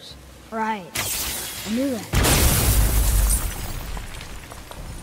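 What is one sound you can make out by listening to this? A loud magical blast bursts and crackles.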